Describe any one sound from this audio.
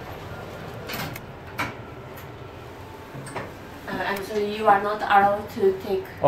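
An elevator car hums and rattles as it moves.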